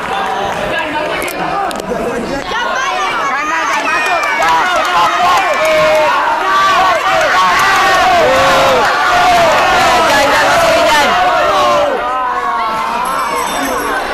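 A crowd of young spectators shouts and cheers loudly in a large echoing hall.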